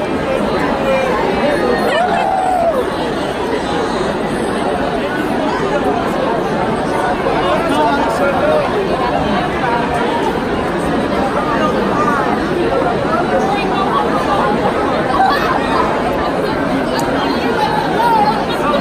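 A crowd of young people chatters loudly all around in a large echoing hall.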